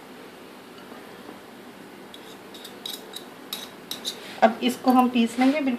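A metal spoon clinks and scrapes against a glass bowl.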